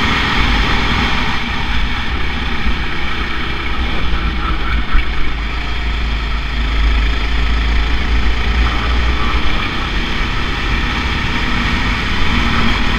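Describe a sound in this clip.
A go-kart engine buzzes loudly and steadily up close.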